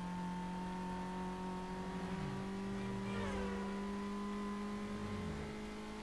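A car engine roars steadily at high speed, shifting gears.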